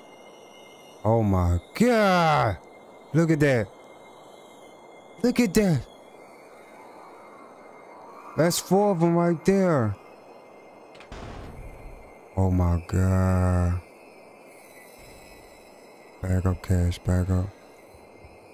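A young man speaks with animation in short bursts, close to a microphone.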